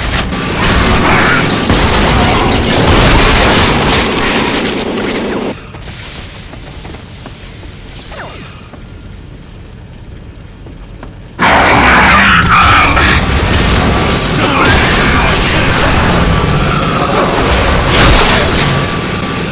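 A heavy gun fires in rapid, roaring bursts.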